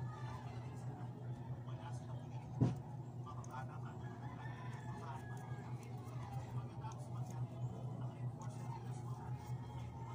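Hands stretch and adjust a headlamp's elastic strap.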